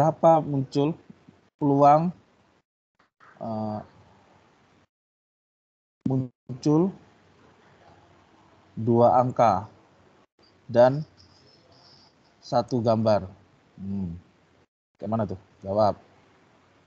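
A man explains calmly over an online call, in short phrases with pauses.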